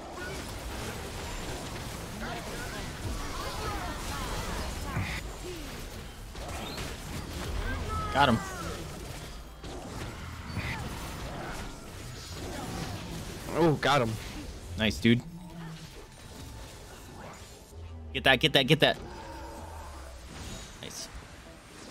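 Game sound effects of spells and hits play.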